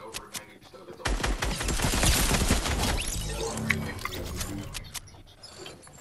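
A rifle fires rapid shots.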